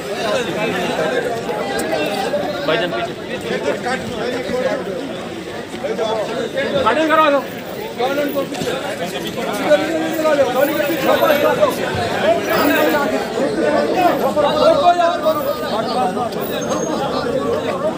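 A crowd of men talk and shout over one another nearby.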